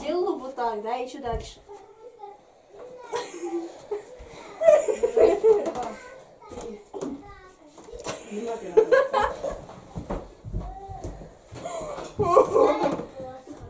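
Two young girls talk and laugh with animation close by.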